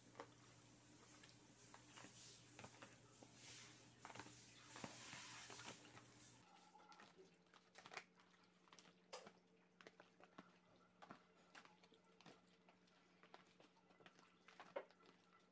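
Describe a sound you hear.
Hands squelch and slap as they mix raw meat.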